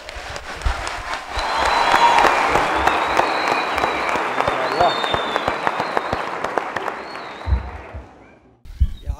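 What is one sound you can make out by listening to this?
A large crowd cheers and applauds in an echoing hall.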